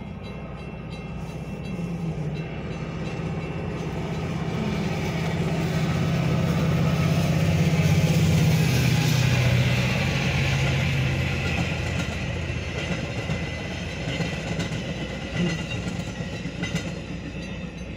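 A railroad crossing bell rings.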